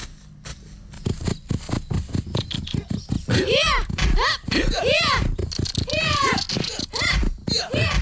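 Horses gallop along a dirt path, their hooves thudding fast.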